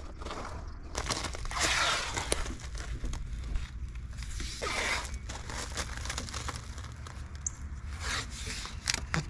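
Plastic trim rustles and clicks against a car door.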